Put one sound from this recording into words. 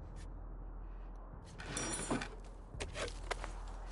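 A wooden drawer slides open.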